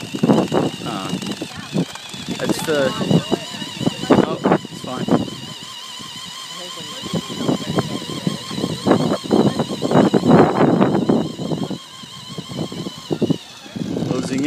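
A small electric motor whines steadily as a toy car drives over pavement.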